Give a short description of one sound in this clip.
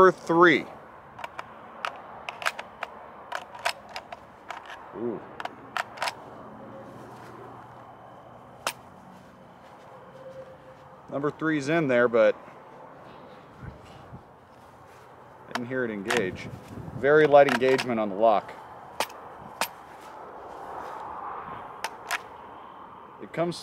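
Metal parts of a rifle click and clack as they are handled.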